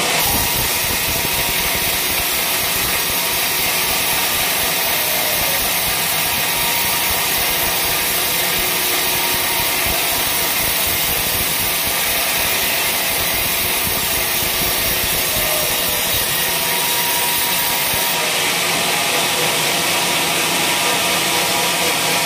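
A band saw whines steadily as it cuts through wood.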